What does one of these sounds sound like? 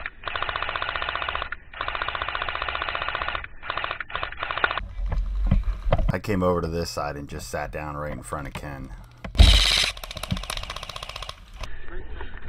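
An airsoft gun fires rapid bursts close by.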